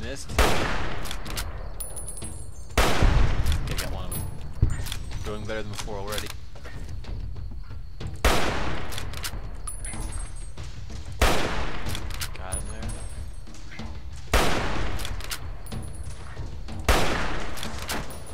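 A rifle bolt clicks and clacks as it is worked between shots.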